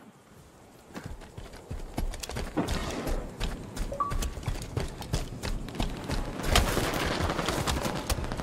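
Rapid gunshots fire in bursts from close by.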